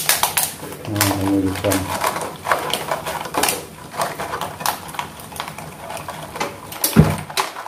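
A plastic bottle crackles as it is pressed into a pot.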